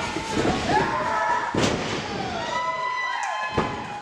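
A wrestler's body thuds onto a ring mat.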